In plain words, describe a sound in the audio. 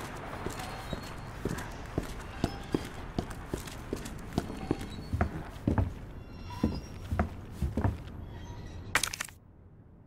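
Footsteps thud on a hard floor at a steady pace.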